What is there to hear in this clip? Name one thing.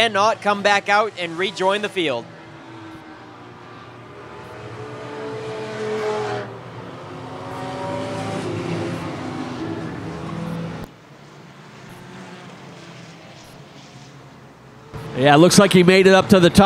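Race car engines roar and drone around a track, rising and falling in pitch as they pass.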